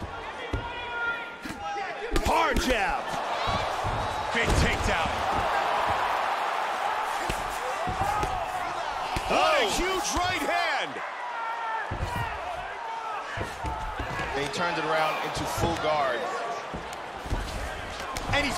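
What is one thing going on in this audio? Punches and knees thud against bodies in a fight.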